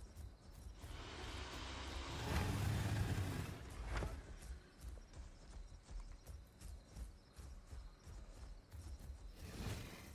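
Footsteps thud steadily through grass.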